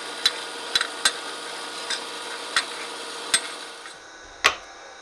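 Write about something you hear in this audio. A band saw cuts through metal with a steady buzz.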